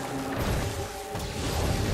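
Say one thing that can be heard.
Electricity crackles and fizzes in short bursts.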